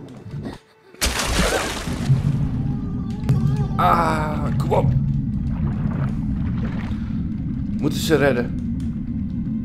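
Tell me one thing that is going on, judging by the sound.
Water rumbles and churns, heard from underwater.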